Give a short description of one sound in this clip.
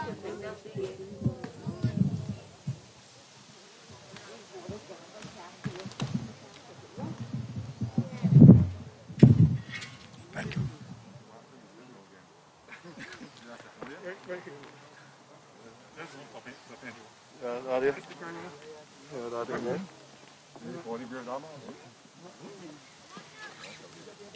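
Men talk and call out to each other nearby, outdoors.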